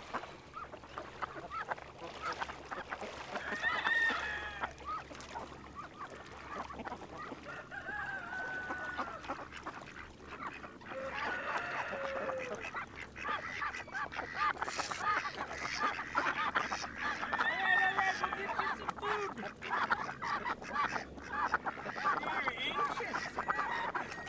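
Water splashes around a person wading.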